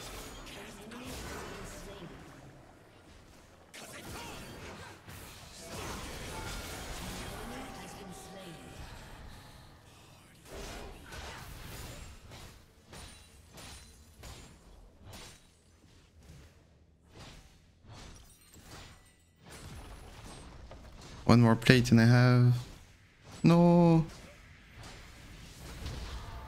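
Video game sword slashes and spell blasts clash.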